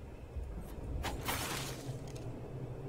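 A fiery blade whooshes through the air.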